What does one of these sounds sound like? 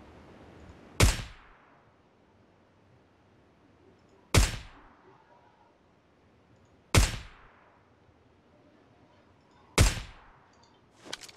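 A rifle fires single loud shots that ring out.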